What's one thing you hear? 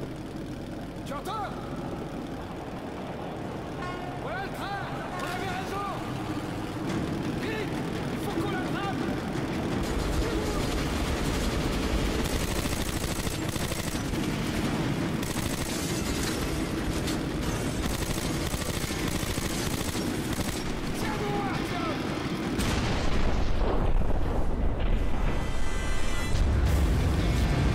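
A train rumbles and clatters along rails.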